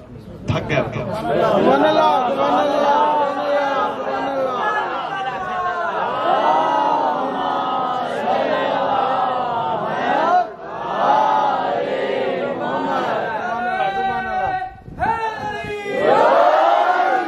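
A man chants in a long, wavering melodic voice through a microphone.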